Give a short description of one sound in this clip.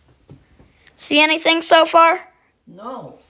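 An elderly woman speaks up close, with animation.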